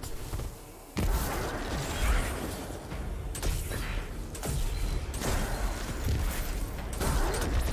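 Energy weapons fire and blast in a fast fight.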